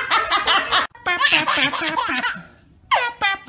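A baby laughs and squeals up close.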